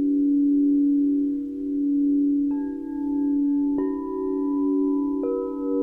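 Crystal singing bowls ring with a steady, softly pulsing hum.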